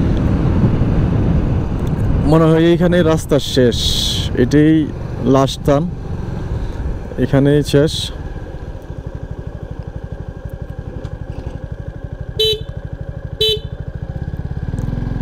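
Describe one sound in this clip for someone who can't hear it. A motorcycle engine hums and throbs steadily.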